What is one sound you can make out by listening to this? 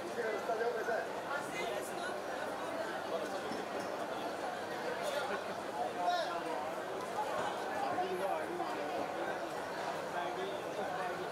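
A crowd of women and men chatter close by.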